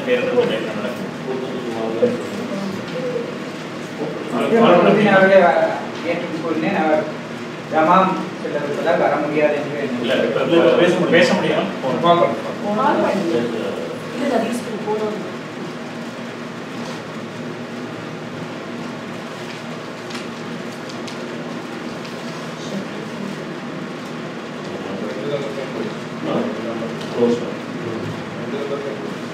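A man speaks calmly at a distance in a room.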